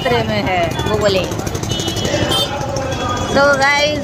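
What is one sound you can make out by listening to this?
Motorbike engines idle and rev close by.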